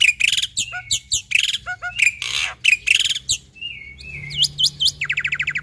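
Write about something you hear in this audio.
A small bird sings loud, fast, chirping and whistling phrases close by.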